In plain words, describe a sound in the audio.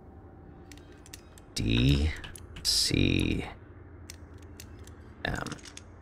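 A combination lock's dials click as they turn.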